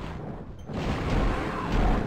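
A fireball bursts with a loud whoosh.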